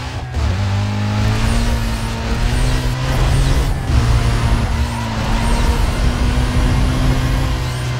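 A car engine backfires with loud pops from the exhaust.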